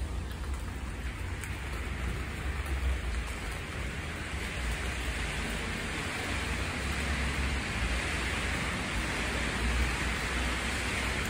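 Wind blows outdoors, rumbling against the microphone.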